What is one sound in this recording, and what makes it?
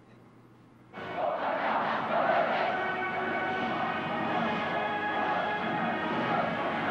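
A huge crowd cheers and roars in an open stadium.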